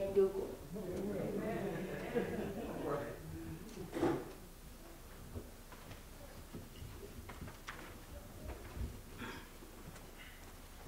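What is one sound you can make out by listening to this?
A woman speaks quietly in an echoing hall.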